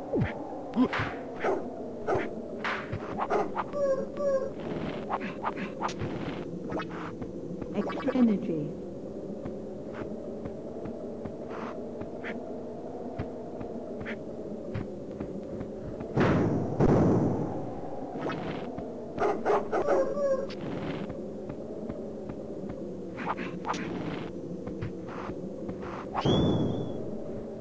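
Game music plays steadily throughout.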